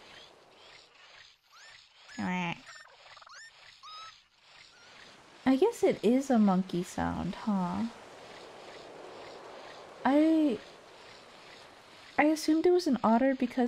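Water splashes softly as a figure wades through it.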